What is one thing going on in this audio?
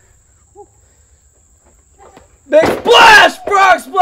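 A body slams onto a wrestling mat with a heavy thud.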